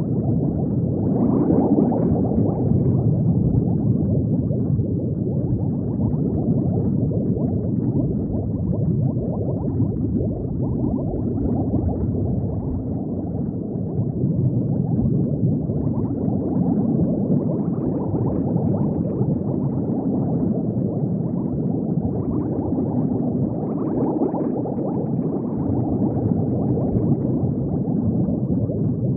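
Bubbles gurgle and rumble steadily underwater.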